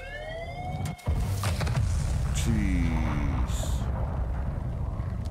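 An explosion booms and rumbles loudly.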